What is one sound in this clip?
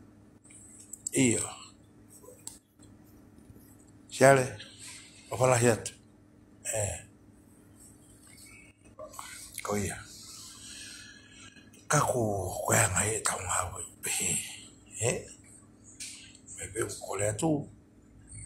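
An elderly man speaks calmly and close up, in short bursts with pauses.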